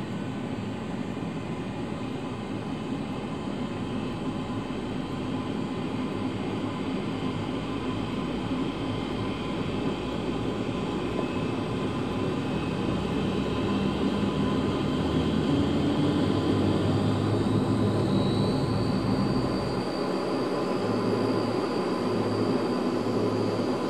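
Propeller engines roar steadily close by, rising slightly in pitch.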